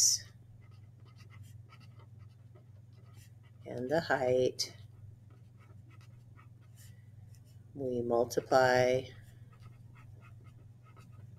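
A felt pen squeaks and scratches across paper.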